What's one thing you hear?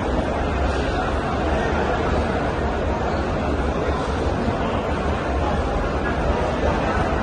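Many footsteps shuffle across a hard floor.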